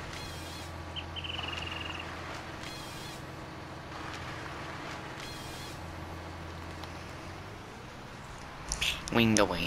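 A machine engine hums steadily.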